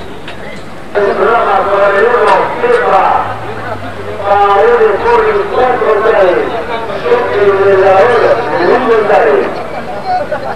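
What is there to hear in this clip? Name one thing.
A man announces loudly over a loudspeaker.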